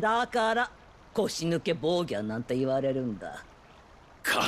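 An elderly woman speaks calmly and mockingly, close by.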